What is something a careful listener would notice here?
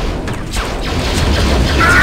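Laser gunfire crackles in quick bursts.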